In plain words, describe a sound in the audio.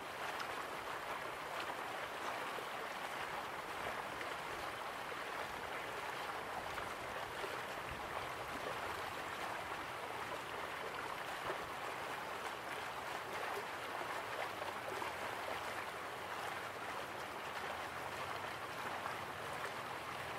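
Water splashes steadily down a waterfall into a pool.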